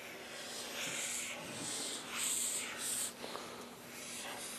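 A marker squeaks across paper.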